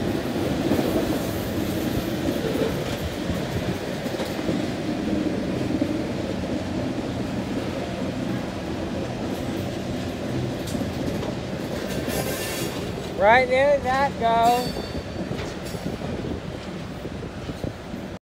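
A freight hopper car rumbles and clanks along steel rails.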